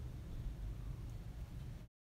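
Dry crumbs pour and patter into a metal bowl.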